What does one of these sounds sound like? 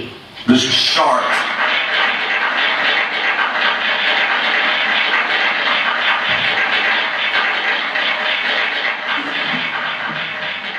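A rock band plays loudly with electric guitars and drums.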